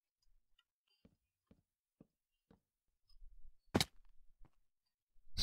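Blocks are placed with soft, dull thuds.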